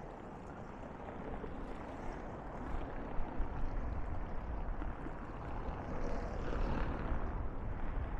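Waves wash gently against a sea wall.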